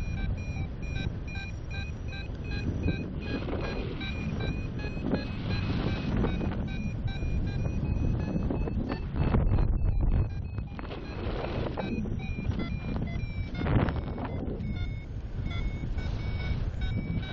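Wind rushes and buffets loudly against the microphone.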